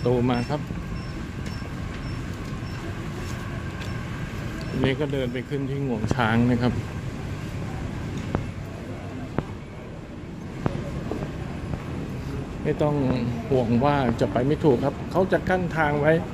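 Footsteps walk along a hard floor.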